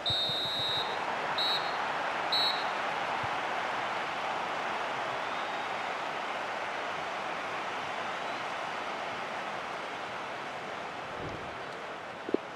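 A large stadium crowd roars steadily and slowly fades.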